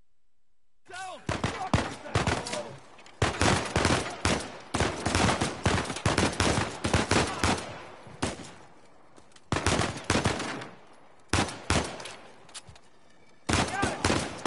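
Pistol shots fire in quick bursts.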